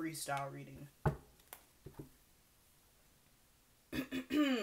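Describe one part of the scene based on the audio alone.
Playing cards tap and slide on a table.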